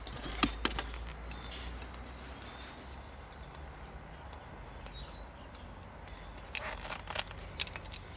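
A crimping tool clicks and crunches as it squeezes a wire connector.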